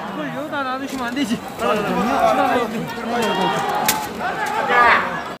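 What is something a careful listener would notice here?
A crowd of men and women talks loudly all around, outdoors.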